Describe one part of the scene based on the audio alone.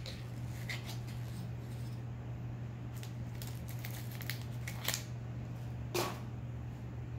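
Foil crinkles and rustles as a man peels open a can.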